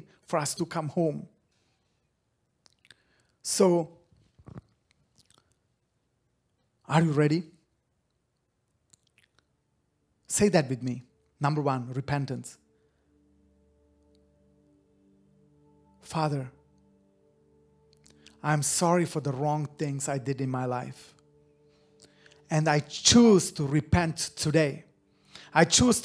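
A man talks into a close microphone with animation, in short bursts with pauses.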